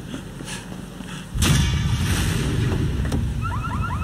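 A car door opens.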